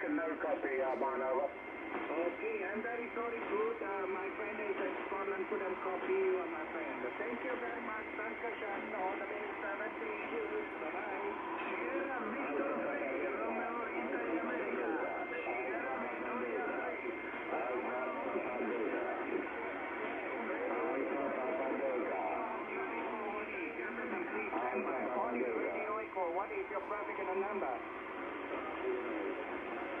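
A radio receiver plays a crackly, muffled transmission through its small loudspeaker.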